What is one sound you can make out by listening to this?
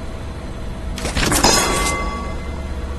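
A mechanical grabber arm shoots out and clanks against metal.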